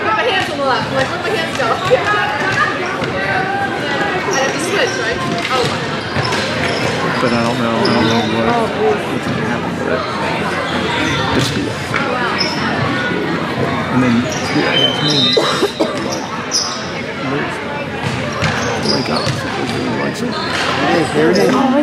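Shoes squeak on a smooth floor.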